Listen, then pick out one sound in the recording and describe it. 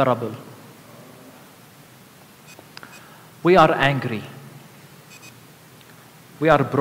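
A man speaks calmly through a microphone in a large echoing hall, pausing between phrases.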